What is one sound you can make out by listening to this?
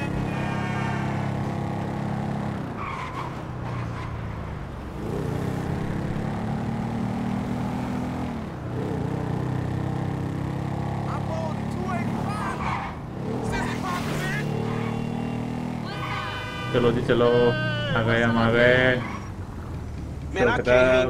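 A motorcycle engine drones and revs up and down.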